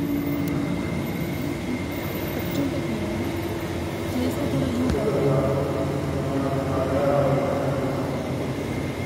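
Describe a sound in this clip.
Many men murmur and talk at once in a large echoing hall.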